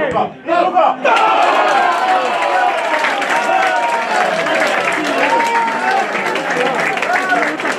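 A small crowd of spectators cheers and shouts loudly outdoors.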